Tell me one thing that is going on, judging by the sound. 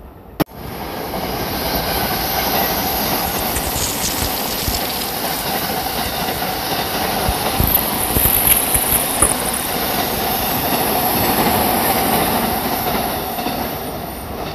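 A passing train rumbles and clatters along the tracks.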